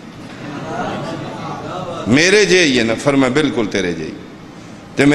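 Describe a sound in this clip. A man speaks loudly and with feeling into a microphone, heard through loudspeakers in a large echoing hall.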